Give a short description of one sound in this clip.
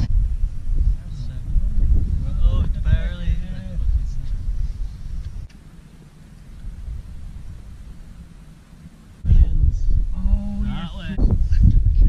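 A man talks loudly outdoors.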